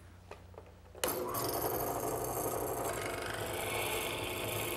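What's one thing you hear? A drill press bores into wood with a steady, loud whine.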